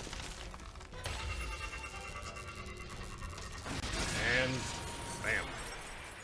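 A deep magical blast roars and whooshes.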